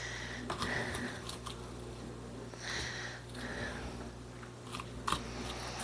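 A knife cuts through broccoli on a cutting board.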